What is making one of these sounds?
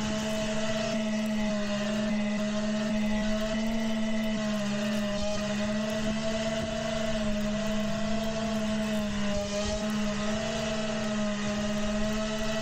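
A small drone's motors whine steadily at idle close by.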